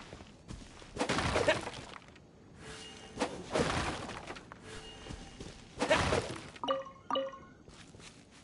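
A sword swishes and strikes with sharp hits.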